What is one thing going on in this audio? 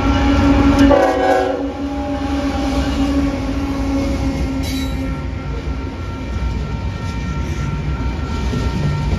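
Freight cars clatter and rattle on the rails.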